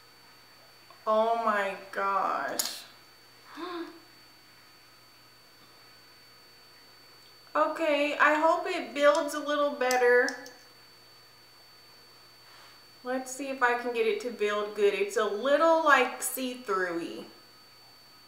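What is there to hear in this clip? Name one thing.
A young woman speaks calmly and close to a microphone, in short bursts with pauses.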